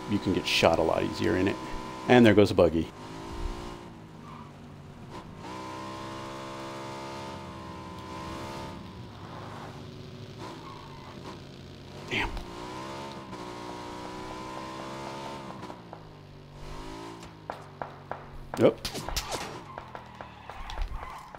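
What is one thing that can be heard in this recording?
A motorcycle engine hums and revs steadily.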